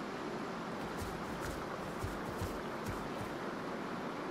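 Heavy footsteps of a large creature thud on grass.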